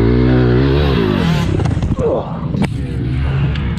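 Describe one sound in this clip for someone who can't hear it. A dirt bike crashes and thuds into the dirt.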